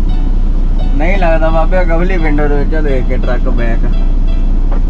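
A young man speaks nearby in a lively voice.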